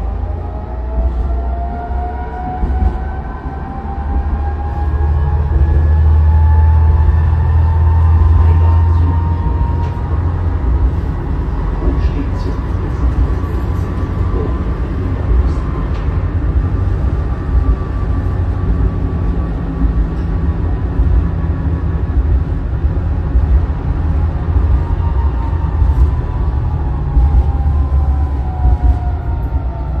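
Tram wheels squeal on the rails in long, rising and falling whines.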